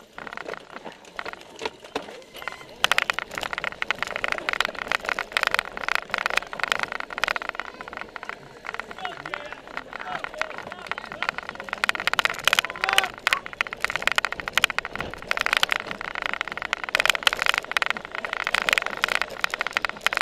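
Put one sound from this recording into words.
Bicycles rattle and clatter over bumpy grass close by.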